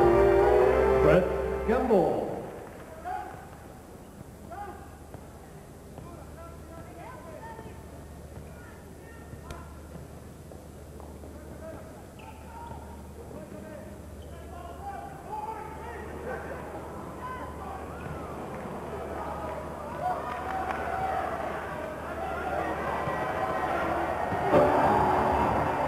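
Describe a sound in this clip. A large crowd murmurs and cheers in a big echoing arena, swelling loudly near the end.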